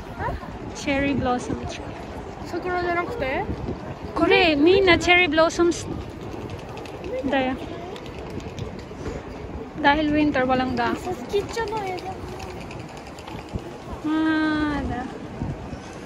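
A young woman talks animatedly close by.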